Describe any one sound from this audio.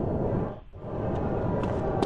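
A car door swings open.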